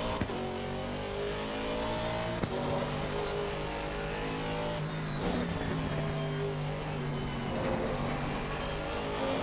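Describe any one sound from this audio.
A racing car engine roars and revs up and down through the gears.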